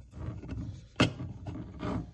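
A hollow plastic cover clacks down onto a hard surface.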